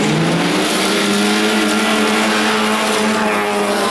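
Tyres scrabble over loose gravel.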